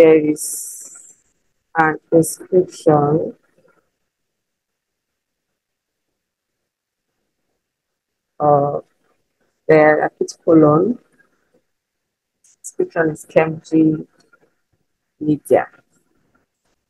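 A young woman speaks slowly and clearly close to a microphone, in short phrases as if dictating.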